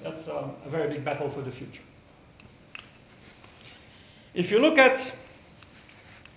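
An older man lectures calmly through a microphone.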